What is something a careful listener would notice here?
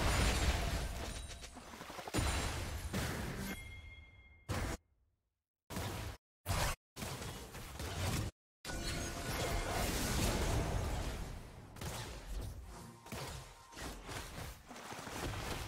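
Video game fight effects clash and burst in quick bursts.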